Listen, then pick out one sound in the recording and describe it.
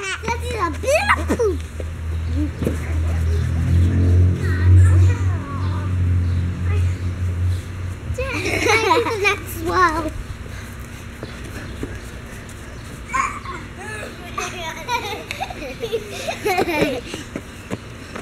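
Young girls shout and squeal excitedly close by, outdoors.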